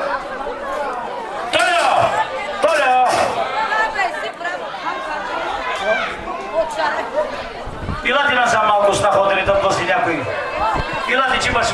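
A man speaks with animation into a microphone, heard through loudspeakers.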